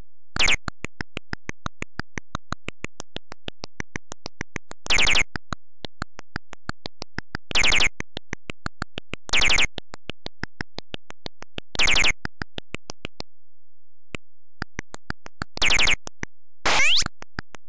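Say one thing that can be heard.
Retro game footsteps tick in a quick, steady beat.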